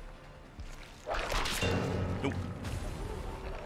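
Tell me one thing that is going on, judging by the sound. A heavy lash whooshes and strikes.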